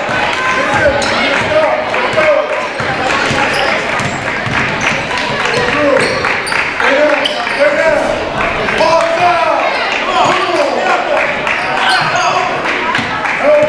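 Spectators murmur and call out in the stands.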